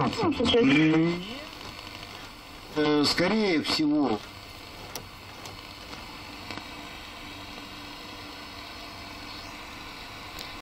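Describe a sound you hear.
An old radio hisses softly with static.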